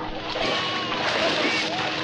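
Water splashes heavily close by.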